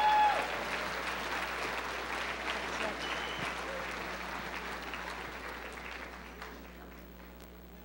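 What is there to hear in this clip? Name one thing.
A crowd applauds loudly in a large hall, then the applause dies away.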